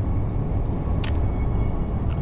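A soft interface click sounds as a menu window opens.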